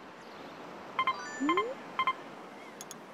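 Short electronic menu chimes beep a few times.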